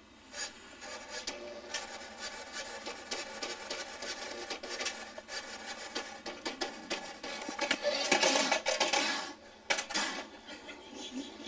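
A small electric toy car motor whirs as the car drives across the floor.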